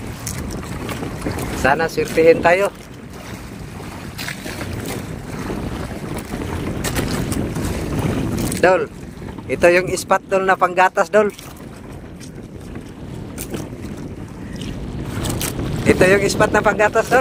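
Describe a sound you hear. Waves slosh and splash against a small boat.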